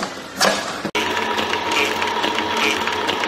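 A machine whirs and clatters steadily.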